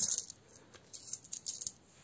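Coins clink together in a hand.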